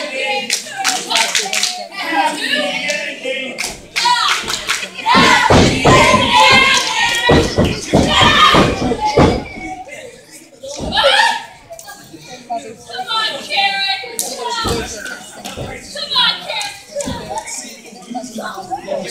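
A crowd of adult men and women shouts and cheers close by in an echoing hall.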